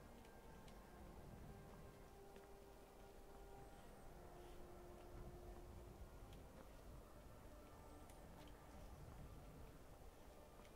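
Footsteps crunch over snow and wooden boards.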